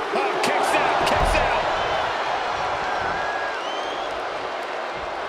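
A large crowd cheers and whistles loudly.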